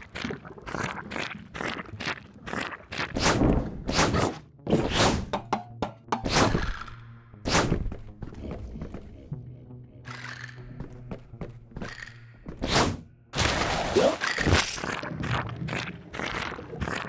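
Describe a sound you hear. Skateboard wheels roll and clatter over hard ground.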